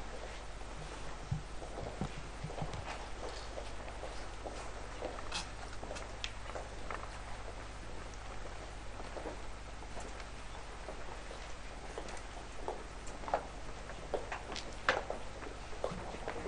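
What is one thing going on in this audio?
Boots step and shuffle on a hard floor.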